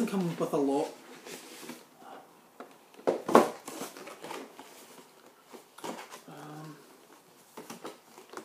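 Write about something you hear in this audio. Cardboard packaging rustles and knocks in a man's hands.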